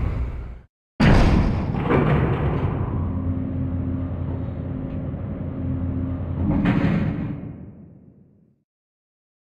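An elevator hums and rattles as it moves.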